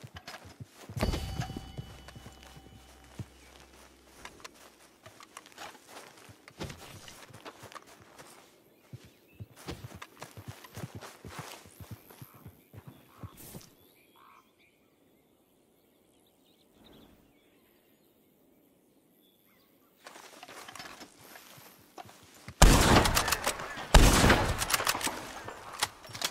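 A rifle fires loudly with a sharp crack and a rolling echo outdoors.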